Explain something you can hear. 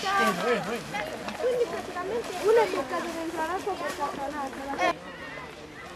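Children chatter and shout nearby outdoors.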